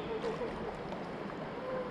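Water laps and splashes gently nearby.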